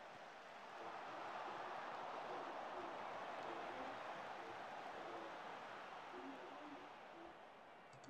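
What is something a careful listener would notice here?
A large stadium crowd roars.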